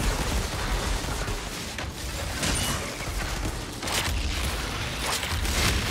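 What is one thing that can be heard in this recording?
Fiery blasts crackle and boom.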